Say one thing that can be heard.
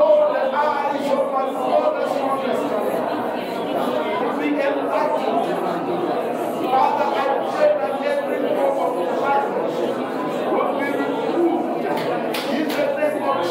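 A small crowd of adults chatters nearby.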